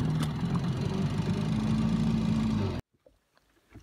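An outboard motor drones steadily close by.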